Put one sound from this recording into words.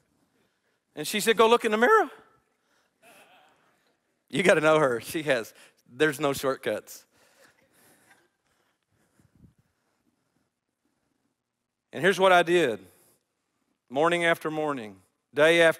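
A middle-aged man speaks with animation into a microphone, with pauses.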